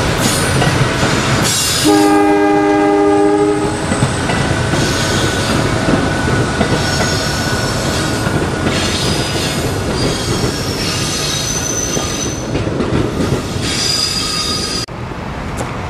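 A passenger train rolls past on the tracks with a steady rumble.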